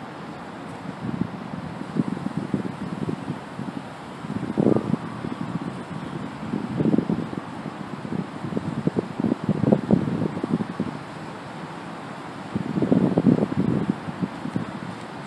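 A young man speaks calmly a few steps away, outdoors.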